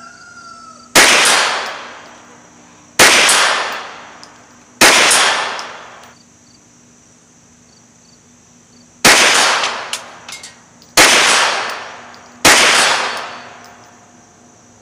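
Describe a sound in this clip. A rifle fires single loud shots outdoors, each echoing away.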